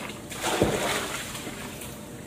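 Water splashes in a plastic tub.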